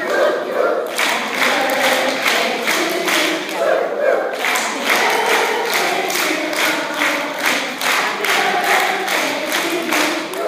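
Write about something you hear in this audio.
A crowd applauds and claps.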